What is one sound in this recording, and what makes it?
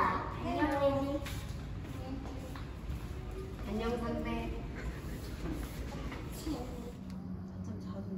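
A young child chatters close by.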